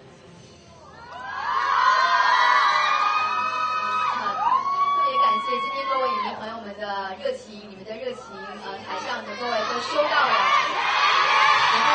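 A crowd of young women screams and cheers loudly nearby.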